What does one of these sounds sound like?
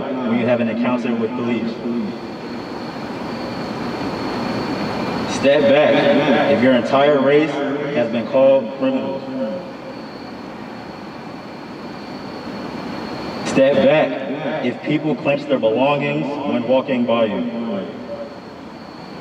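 A group of young people sings slowly together outdoors.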